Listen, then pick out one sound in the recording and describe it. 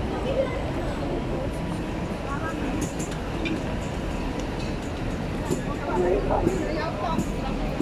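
A bus engine idles close by.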